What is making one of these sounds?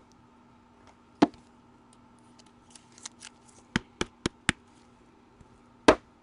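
A card slides into a plastic sleeve with a soft rustle.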